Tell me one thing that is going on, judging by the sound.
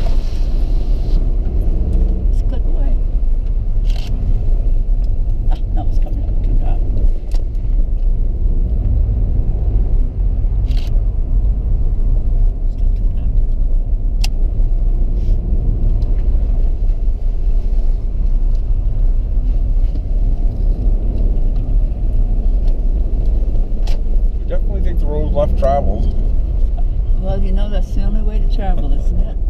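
Tyres rumble over a rough wet road.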